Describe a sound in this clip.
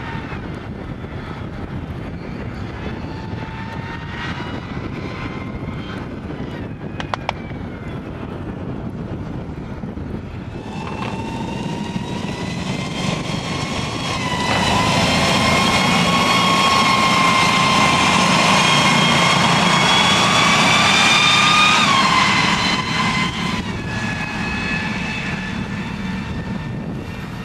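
Tank engines whine with a high, steady turbine hum, louder as a tank passes close by.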